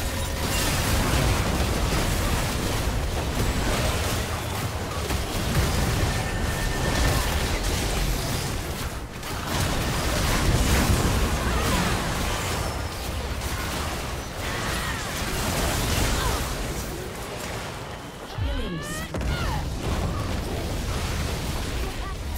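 Magic blasts crackle and boom in a fierce fight.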